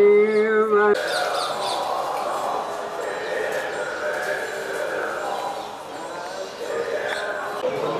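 An elderly man speaks softly close by.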